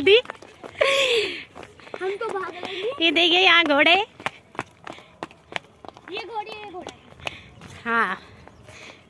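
Young children shout and chatter excitedly close by.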